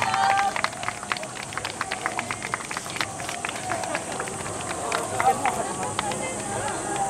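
Hand clappers clack sharply in a quick rhythm.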